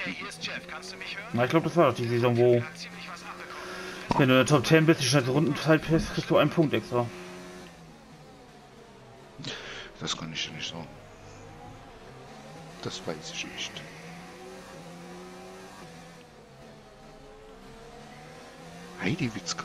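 A racing car engine roars at high revs, rising and falling as the car shifts gears.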